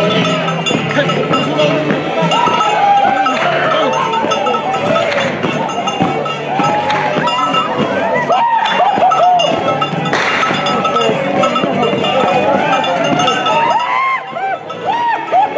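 A crowd of dancers cries out and whoops loudly close by.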